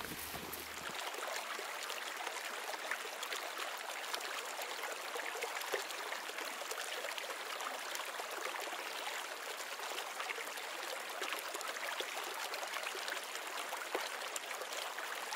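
A shallow stream trickles and burbles over stones.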